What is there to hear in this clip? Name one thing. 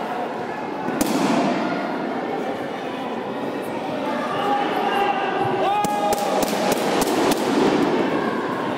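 Kicks thud sharply against body protectors.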